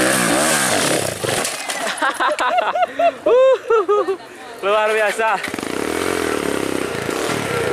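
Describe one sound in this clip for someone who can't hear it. A dirt bike engine revs hard and sputters.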